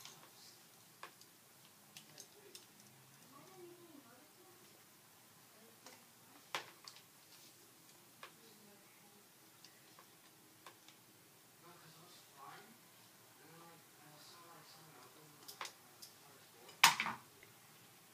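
A curling iron clamp clicks open and shut.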